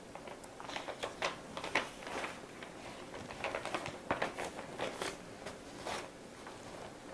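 A middle-aged woman speaks softly and slowly, close to a microphone.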